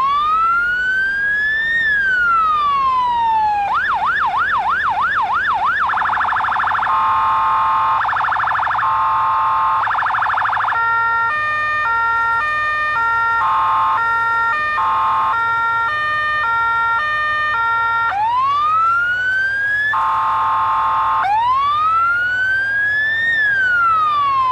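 A fire truck siren wails, yelps and switches between tones.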